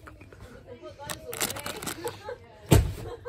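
Plastic wrapping crinkles under a hand.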